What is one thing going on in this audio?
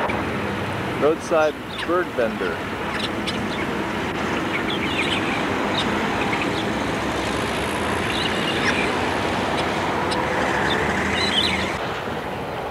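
Caged parrots and birds squawk and chirp.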